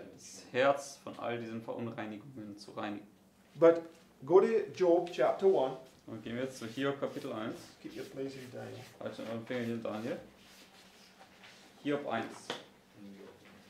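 A middle-aged man speaks calmly, explaining.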